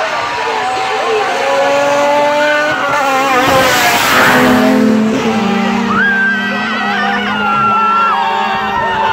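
A car engine roars closer and speeds past.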